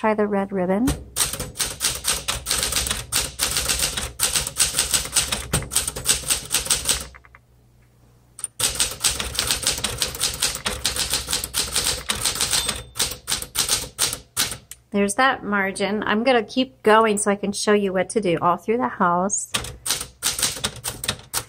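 Typewriter keys clack rapidly.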